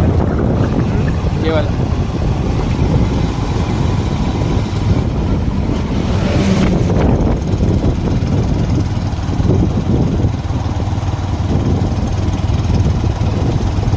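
Wind rushes and buffets against the microphone on a fast ride outdoors.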